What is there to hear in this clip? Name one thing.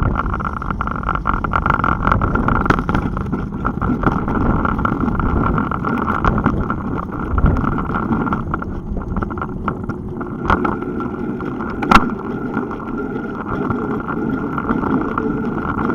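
A bicycle rattles and clicks over bumps in the road.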